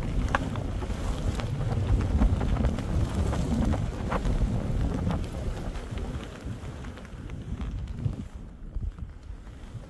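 Skis swish and crunch through soft snow.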